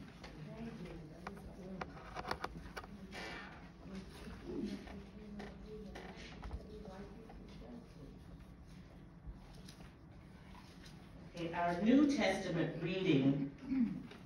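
A woman speaks calmly through a microphone in a large, echoing room.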